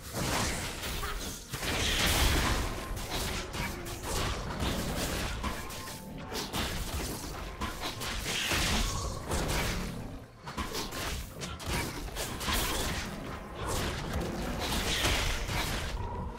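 Game weapons strike with quick hits.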